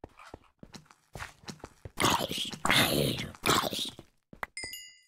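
A sword strikes a creature several times.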